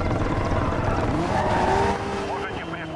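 Tyres screech as a car drifts around a bend.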